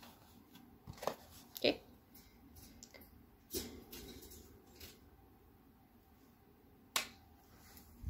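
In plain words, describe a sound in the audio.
A plastic palette case clicks and taps.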